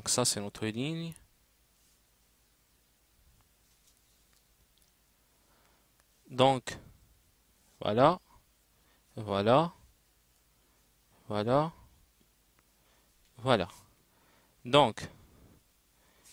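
A young man speaks short syllables clearly into a close microphone, pausing between them.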